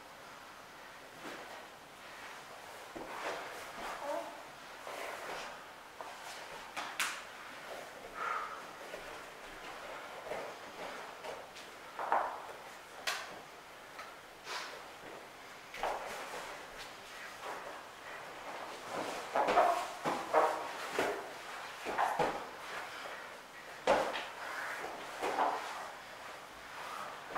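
Bodies thump and slide on a padded mat.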